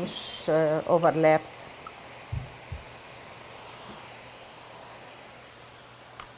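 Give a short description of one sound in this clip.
Oil sizzles softly in a frying pan.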